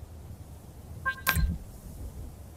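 A game menu chimes with a short click.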